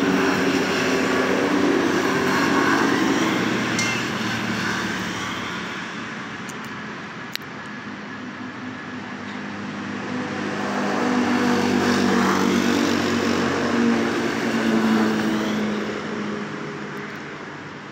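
A side-by-side utility vehicle's engine drones as it drives past, rising and falling.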